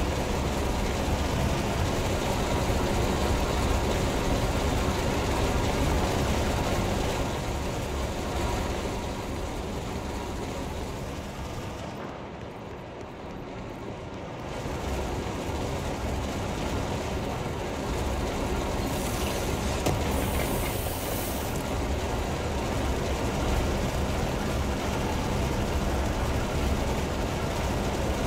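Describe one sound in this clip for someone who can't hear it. A low, steady rumble fills a large echoing space.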